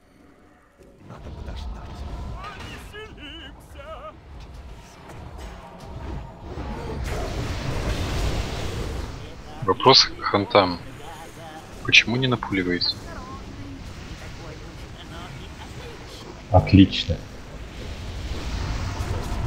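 Game spell effects whoosh, crackle and boom during a battle.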